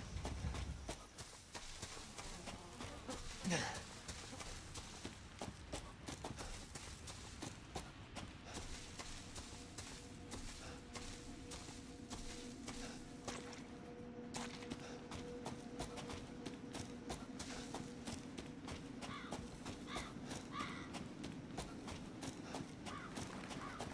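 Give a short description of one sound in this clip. Footsteps rustle and crunch through dry leaves and undergrowth.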